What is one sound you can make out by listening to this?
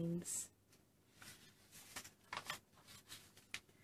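A page of paper rustles as a hand turns the page.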